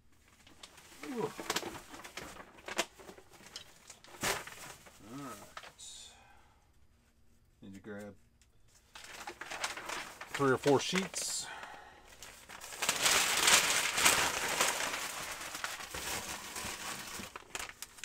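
Plastic packaging rustles and crinkles close by.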